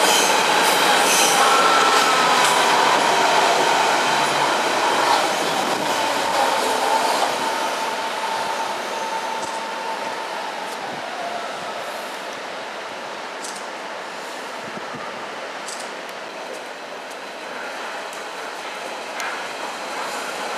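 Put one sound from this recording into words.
A train rumbles past along the tracks.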